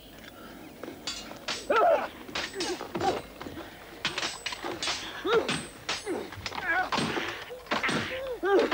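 Men grunt and strain as they fight.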